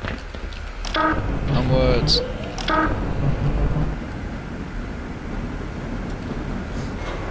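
A vehicle engine hums low and steady.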